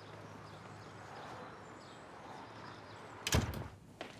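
A door swings shut with a thud.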